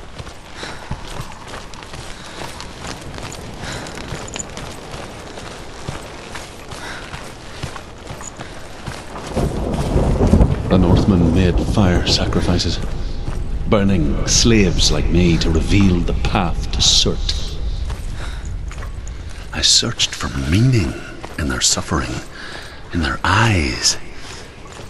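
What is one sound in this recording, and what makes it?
Footsteps crunch over rough ground.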